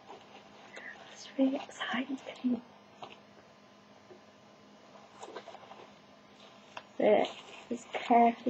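Paper rustles and tears as a package is unwrapped.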